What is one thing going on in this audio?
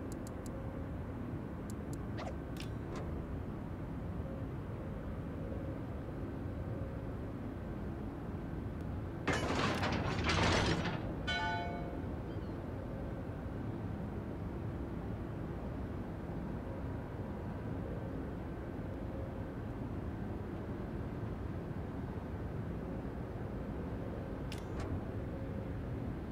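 A battleship's hull churns through the sea in a low, steady rush of water.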